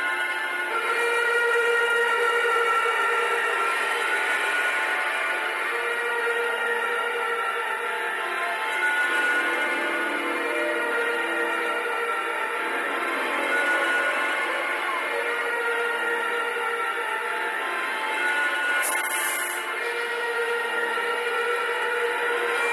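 An electric bass guitar plays.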